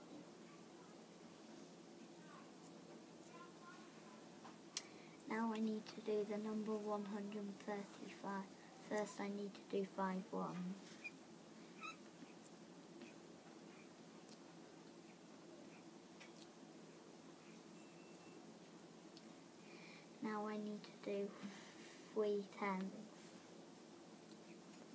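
A marker pen squeaks faintly across paper.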